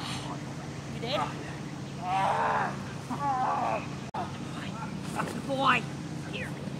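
An elderly man shouts commands outdoors.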